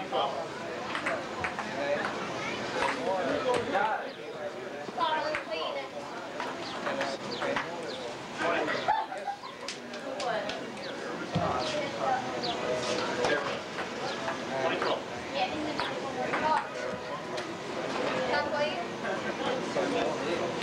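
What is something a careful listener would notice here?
Several men and women chatter and talk at once nearby, outdoors.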